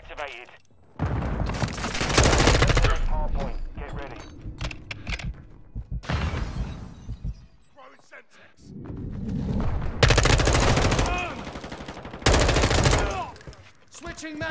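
Rapid gunfire bursts loudly in short volleys.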